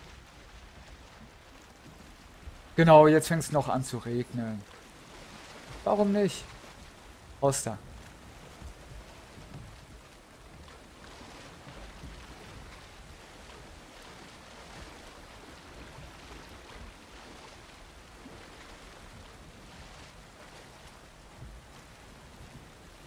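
Muffled water murmurs steadily underwater.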